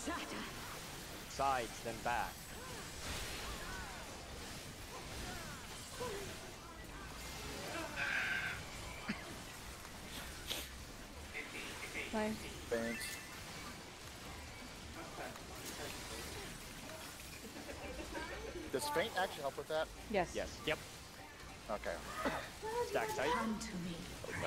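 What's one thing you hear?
Game spell effects whoosh and chime.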